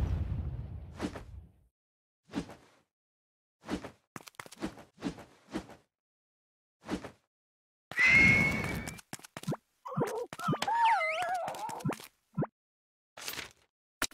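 Short game attack sounds strike in quick bursts.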